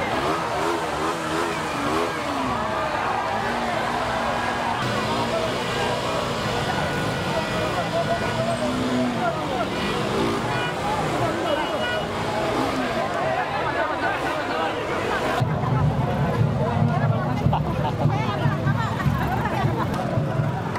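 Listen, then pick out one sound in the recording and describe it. A dense crowd of men and women talks and shouts loudly close by.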